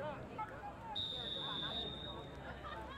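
A referee's whistle blows a short steady blast.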